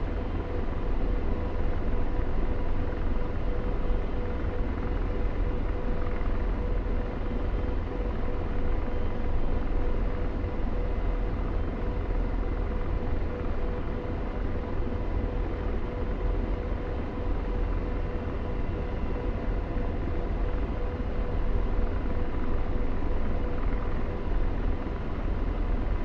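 A steady high whine from the helicopter's turbine runs throughout.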